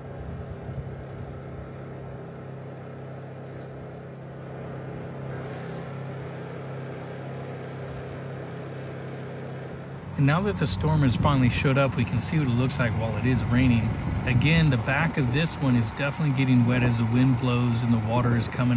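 A small generator engine hums steadily nearby.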